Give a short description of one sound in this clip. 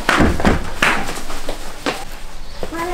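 A boy knocks on a door.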